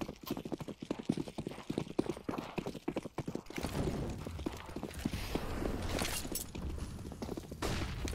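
Footsteps run on stone.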